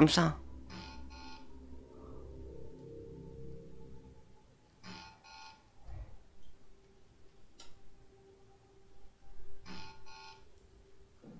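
A handheld device beeps with a short electronic error tone.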